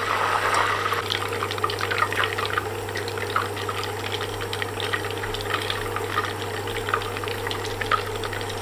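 Butter crackles and pops as it bubbles in a pan.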